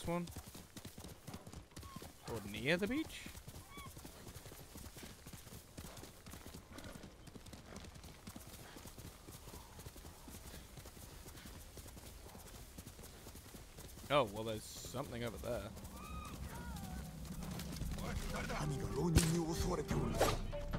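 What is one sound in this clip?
A horse gallops steadily over soft ground.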